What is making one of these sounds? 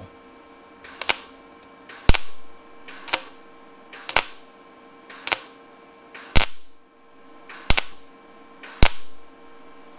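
An arc welder crackles in short, sharp bursts.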